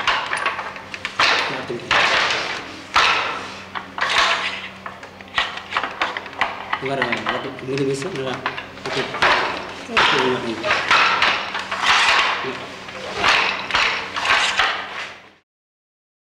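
Threads rustle and click as hands pass yarn through a loom.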